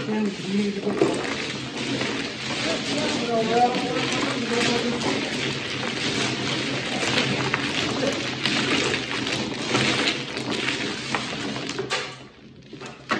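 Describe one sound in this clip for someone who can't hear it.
Plastic tiles clatter and rattle as hands shuffle them across a table.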